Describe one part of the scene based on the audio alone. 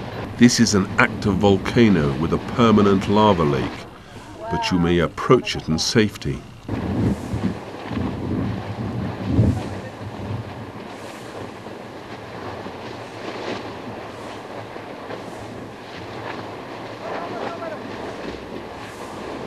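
Molten lava bubbles and churns with a low rumble.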